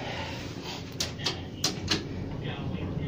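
A finger clicks an elevator button.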